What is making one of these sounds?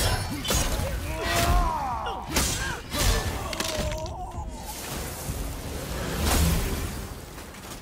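Heavy weapon blows strike with loud crashing thuds.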